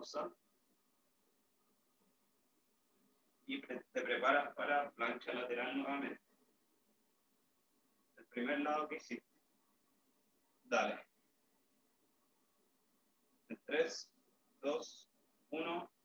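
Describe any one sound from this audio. A young man talks calmly nearby, in short bursts.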